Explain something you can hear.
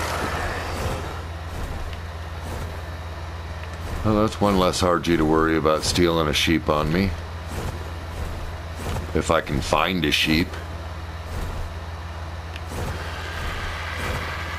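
Large wings flap with steady whooshing beats.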